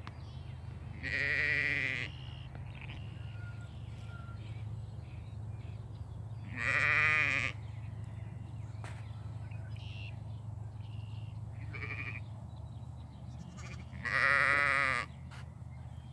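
Sheep bleat loudly nearby, now and then.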